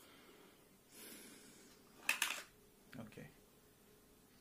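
A plastic game controller clicks and rattles as hands pull it apart.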